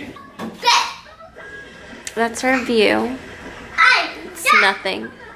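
Young children talk and squeal excitedly close by.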